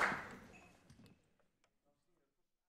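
An audience's applause dies away in a large hall.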